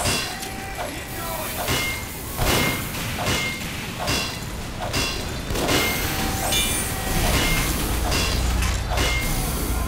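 A metal wrench clangs repeatedly against a metal machine, each blow ringing briefly.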